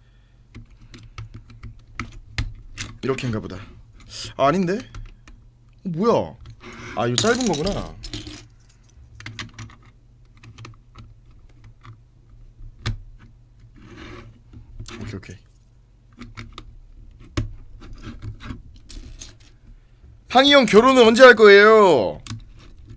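Small plastic bricks click and snap together.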